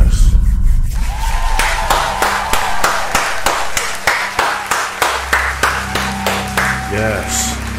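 A man claps his hands rhythmically close by.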